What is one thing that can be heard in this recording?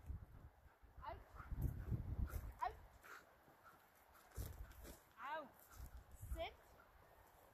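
A woman calls out to a dog nearby.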